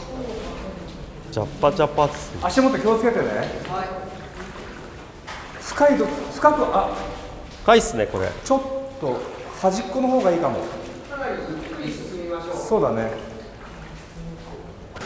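Men talk with animation close by, their voices echoing in a tunnel.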